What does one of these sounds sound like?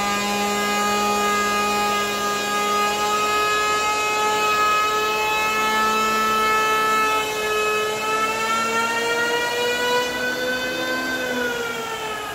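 An electric hand planer whines loudly as it shaves wood.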